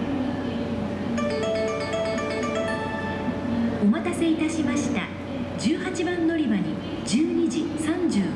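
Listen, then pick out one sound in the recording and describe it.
An electric express train approaches on the tracks.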